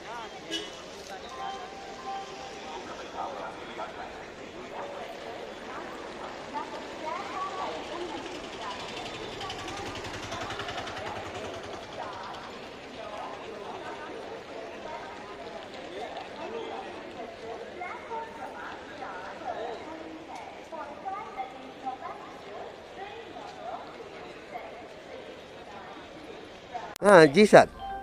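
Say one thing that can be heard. A crowd murmurs and chatters outdoors.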